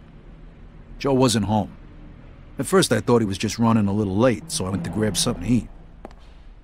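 A man speaks in a low, weary voice.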